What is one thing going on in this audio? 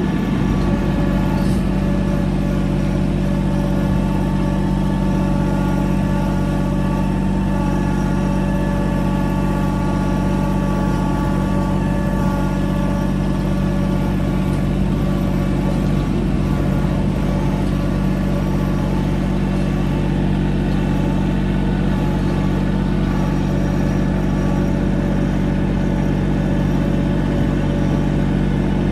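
A tractor engine rumbles steadily close by.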